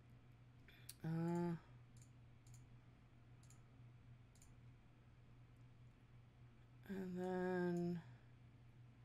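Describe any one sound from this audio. A bright electronic chime rings out briefly.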